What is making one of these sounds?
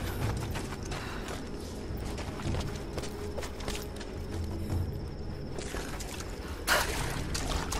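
Footsteps crunch slowly over rough stone.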